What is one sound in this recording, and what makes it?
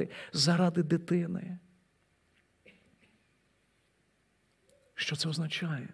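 A middle-aged man speaks with feeling into a microphone, pausing between phrases.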